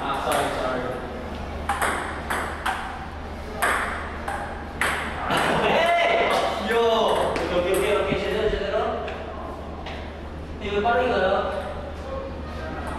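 Young men talk and shout excitedly close by.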